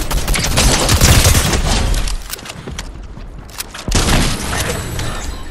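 Video game gunfire rattles in rapid bursts.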